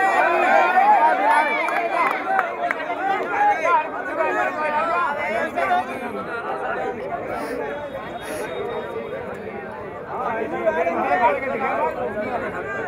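A large outdoor crowd chatters and calls out loudly all around.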